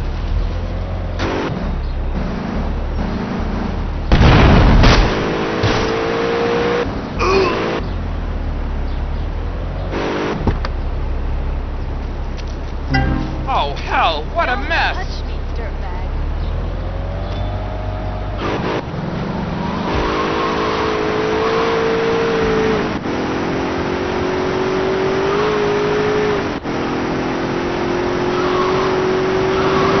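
A car engine rumbles and revs, rising in pitch as it speeds up.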